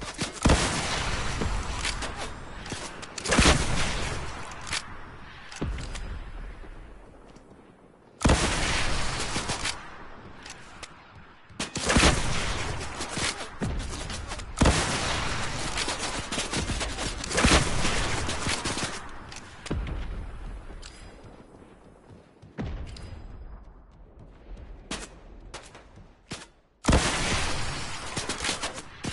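Rockets launch with loud whooshing blasts.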